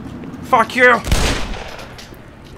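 A revolver fires a single loud shot that echoes in a tunnel.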